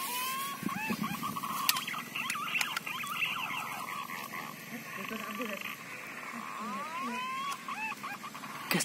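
Birds chirp and call in the trees.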